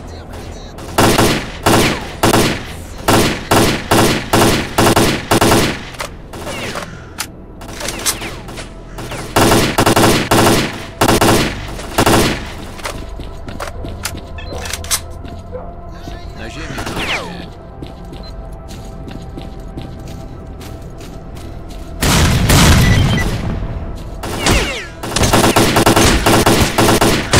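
Rifle shots ring out in quick bursts, each with a short echo.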